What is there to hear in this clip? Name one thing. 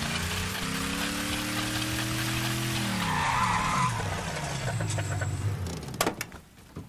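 A car engine hums and winds down as the car slows to a stop.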